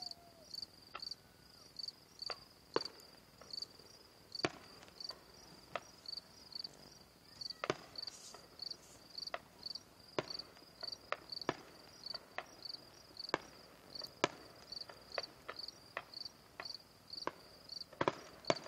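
Fireworks burst with distant bangs and pops.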